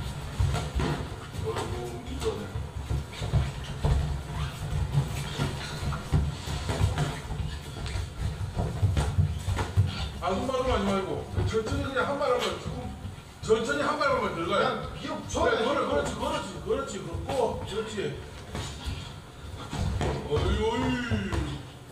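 Gloved punches thump against pads.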